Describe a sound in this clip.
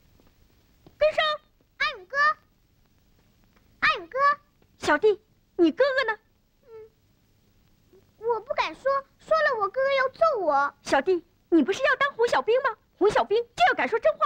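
Young boys talk with animation, close by.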